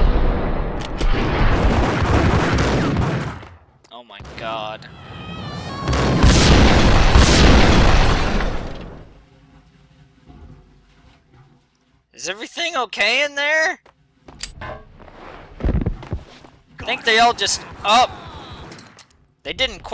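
Pistol shots fire in rapid bursts, echoing in a hard room.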